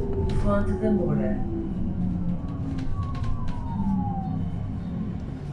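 A bus engine hums steadily as the bus approaches.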